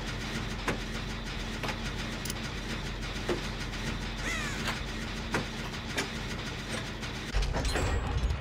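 A machine rattles and clanks as it is repaired.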